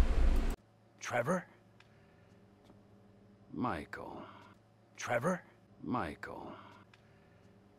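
A man speaks in short, tense phrases close by.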